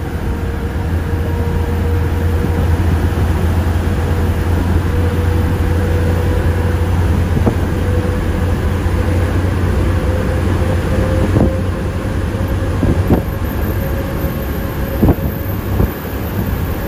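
A car engine hums steadily at speed, its pitch slowly rising.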